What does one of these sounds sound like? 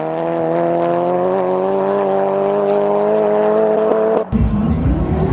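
Car engines drone at high revs as cars speed away.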